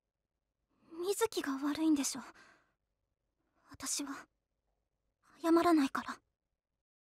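A young woman speaks softly and hesitantly.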